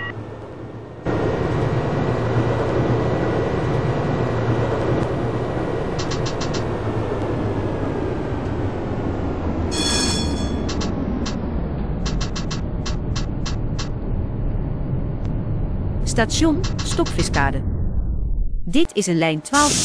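A tram rumbles and hums along its rails.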